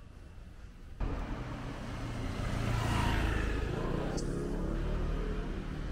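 A motorbike passes by close, its engine rising and fading.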